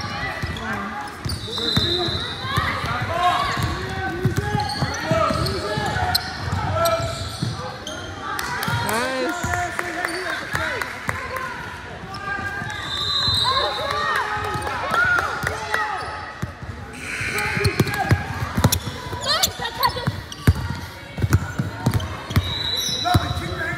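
Young women call out to one another across the court.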